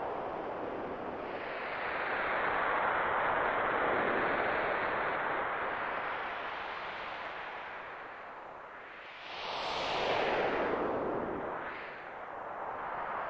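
Waves wash and surge in slow swells.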